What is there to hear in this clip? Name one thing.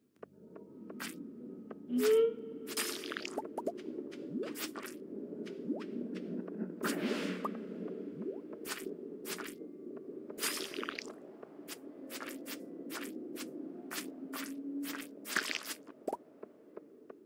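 A sword swishes and strikes with sharp hits, many times.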